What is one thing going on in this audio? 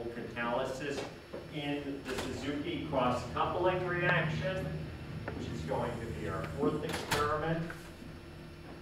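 A man lectures in a room with some echo, speaking clearly.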